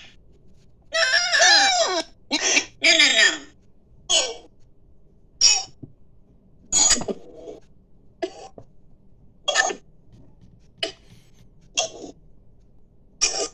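A cartoon cat speaks in a squeaky, high-pitched voice through small phone loudspeakers.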